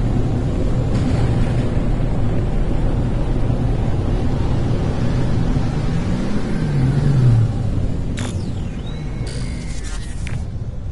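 A spacecraft engine rumbles steadily and then eases off.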